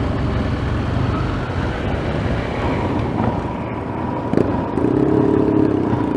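A motorcycle engine idles and rumbles close by.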